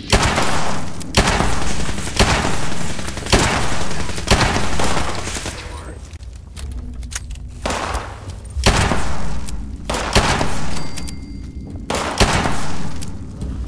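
A heavy gun fires loud booming shots, each followed by a long rumbling echo.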